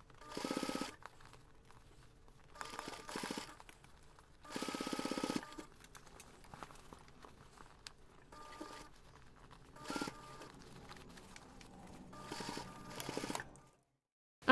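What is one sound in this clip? A sewing machine runs in short, fast rattling bursts.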